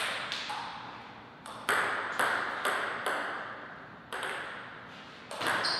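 A table tennis ball clicks sharply against paddles and the table, echoing in a large hall.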